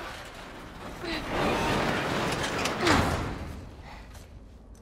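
A loud rushing scrape sounds as a body slides through a narrow opening.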